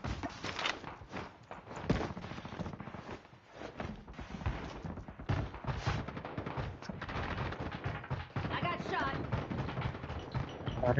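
Quick footsteps thud across wooden stairs and floorboards.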